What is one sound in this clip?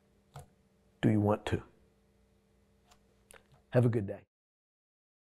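A middle-aged man speaks calmly and close into a microphone, in short phrases.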